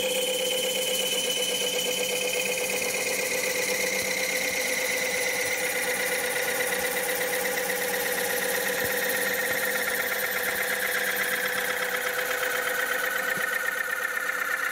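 A chisel scrapes and hisses against spinning wood.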